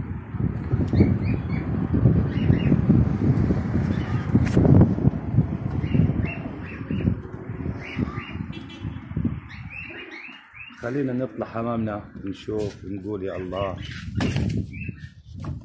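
A flock of pigeons flaps its wings overhead.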